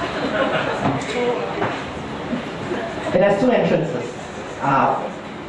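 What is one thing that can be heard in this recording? A man speaks into a microphone, heard through loudspeakers in an echoing room.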